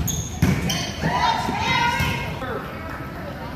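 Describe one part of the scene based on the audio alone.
Young girls call out with excitement.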